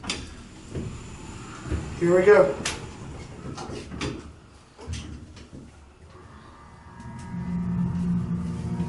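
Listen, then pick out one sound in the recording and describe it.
An elevator car hums and rumbles softly as it travels.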